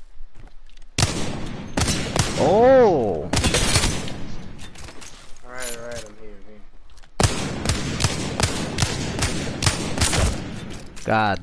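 A rifle fires rapid shots in quick bursts.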